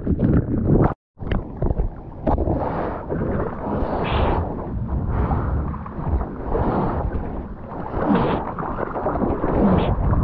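Water splashes and sloshes close to the microphone.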